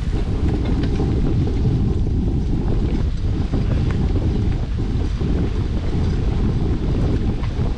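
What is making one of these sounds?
Wind rumbles loudly outdoors.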